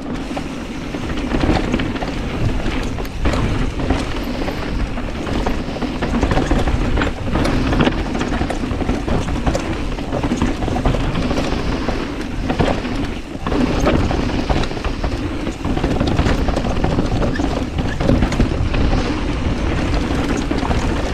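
Bicycle tyres rumble and crunch over a rocky dirt trail.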